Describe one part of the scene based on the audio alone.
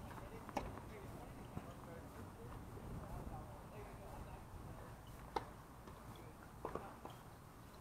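A tennis racket strikes a ball with sharp pops now and then.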